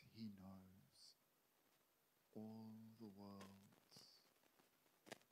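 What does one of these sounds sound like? A man speaks slowly and calmly into a microphone, with long pauses.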